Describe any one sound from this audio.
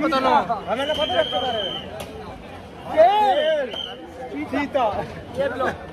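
Young men laugh close by.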